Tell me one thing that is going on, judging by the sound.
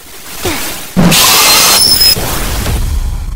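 Loud static hisses and crackles.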